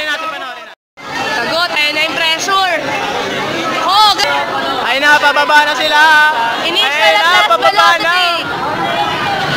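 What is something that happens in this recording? People chatter and shout nearby.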